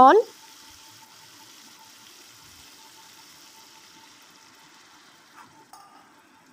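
Sauce sizzles softly in a pan.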